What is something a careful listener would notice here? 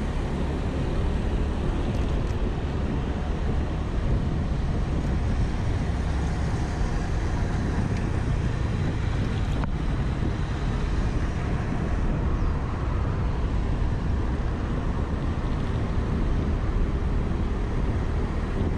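Wind rushes loudly and steadily past while riding.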